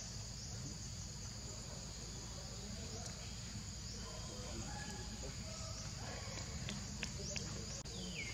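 Small monkeys patter over dry leaves.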